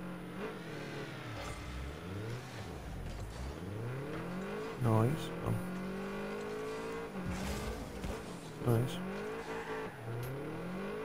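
A car engine hums and revs up and down throughout.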